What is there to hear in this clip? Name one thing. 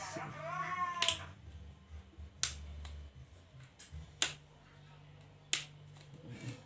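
Small plastic parts click sharply as a cable is fitted.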